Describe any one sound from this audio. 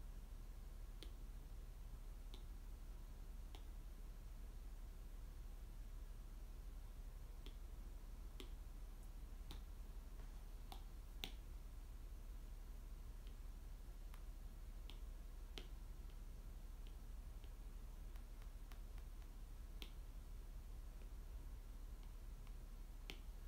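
Fingers softly tap and scratch close to a microphone.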